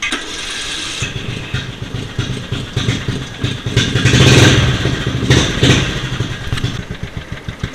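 A riding mower engine starts and runs with a low rumble.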